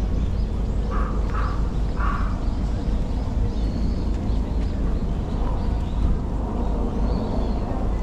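Men and women chat quietly in the distance.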